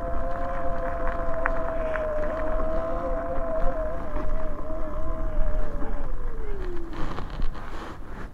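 Bike tyres crunch over gravel.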